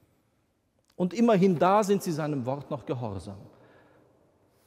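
A man speaks in a chanting voice through a microphone in a large echoing hall.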